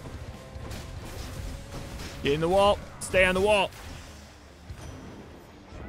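Magic blasts whoosh and crash in quick bursts.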